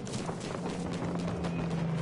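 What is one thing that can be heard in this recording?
Leaves and grass rustle as someone pushes through dense bushes.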